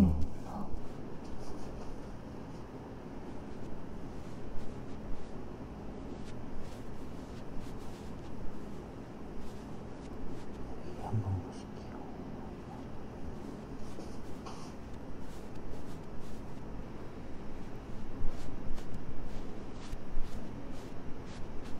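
A makeup sponge pats softly against skin.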